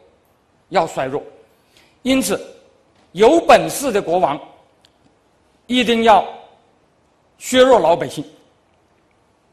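An elderly man speaks slowly and deliberately into a microphone, in short phrases with pauses.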